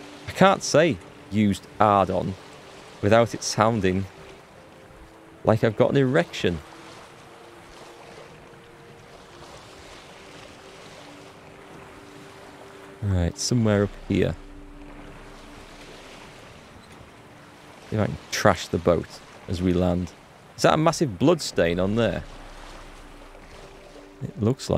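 Water laps gently against a small sailing boat.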